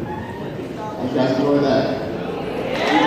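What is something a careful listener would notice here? A man speaks into a microphone through loudspeakers.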